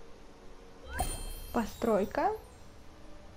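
A short bright game chime plays.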